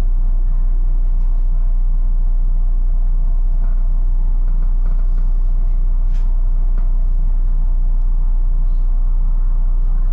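Cars pass by on the road alongside.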